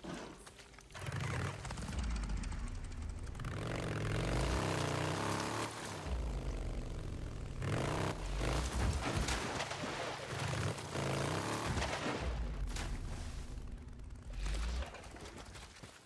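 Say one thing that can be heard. A motorbike engine roars as it rides over rough ground.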